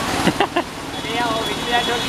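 An auto rickshaw churns through floodwater.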